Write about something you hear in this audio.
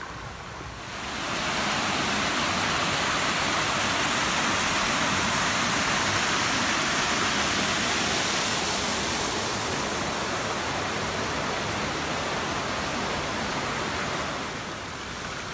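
Water rushes loudly over a small weir.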